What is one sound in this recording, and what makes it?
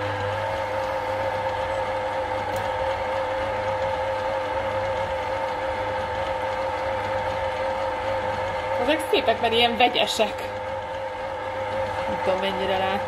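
A mixer motor hums steadily.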